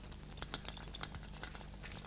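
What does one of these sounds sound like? Footsteps shuffle across a bare floor.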